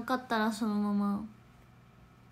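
A young woman speaks close to a microphone in a high, drawn-out voice.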